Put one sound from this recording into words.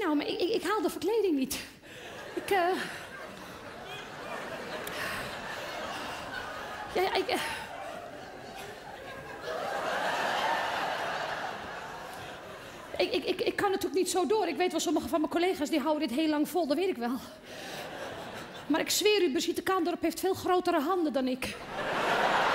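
A woman sings on a stage, heard through a microphone in a large hall.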